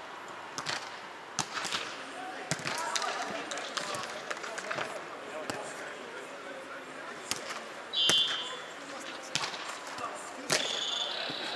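A volleyball thumps off players' hands in a large echoing hall.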